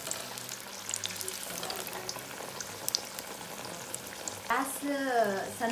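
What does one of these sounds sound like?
Battered chillies sizzle and crackle as they deep-fry in hot oil.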